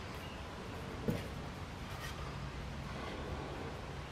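A wooden board knocks onto a wooden box.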